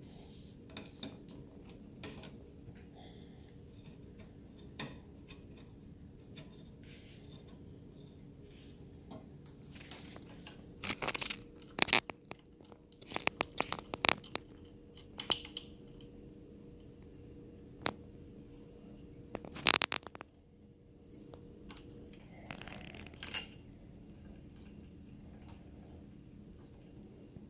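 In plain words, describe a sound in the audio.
A small metal tool clicks and scrapes against metal parts.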